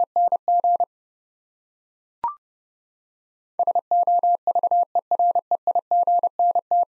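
A telegraph key taps out quick Morse code beeps in a steady tone.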